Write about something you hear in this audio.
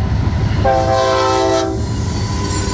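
A locomotive horn blares loudly and briefly.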